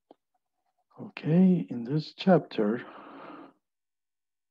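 A young man speaks calmly, close, as if over an online call.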